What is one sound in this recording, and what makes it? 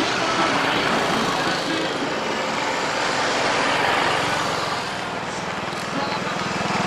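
A motorcycle engine hums close by as it rolls along.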